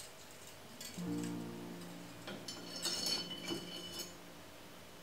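Metal whisks rattle as they drop into a ceramic holder.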